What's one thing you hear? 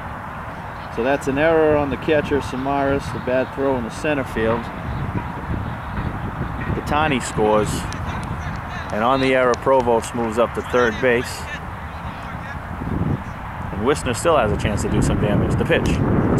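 A man talks loudly nearby, outdoors.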